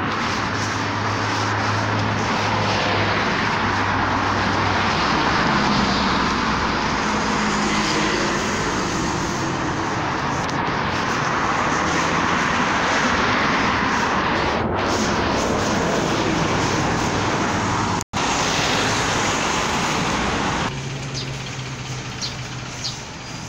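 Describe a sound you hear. Footsteps scuff steadily on a paved path outdoors.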